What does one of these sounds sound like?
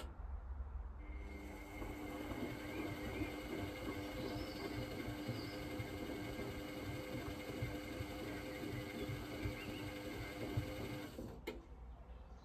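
Water and suds slosh inside a washing machine.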